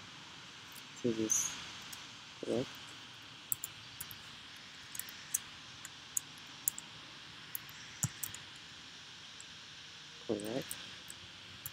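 A person speaks briefly and calmly, close to a microphone.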